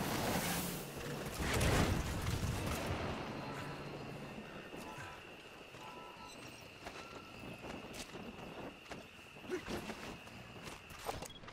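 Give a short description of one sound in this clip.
Footsteps rustle through dry grass at a quick pace.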